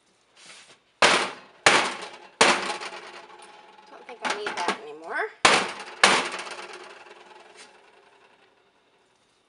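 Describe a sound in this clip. Plastic containers knock and clatter against a metal counter.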